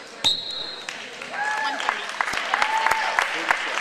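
Spectators shout and cheer.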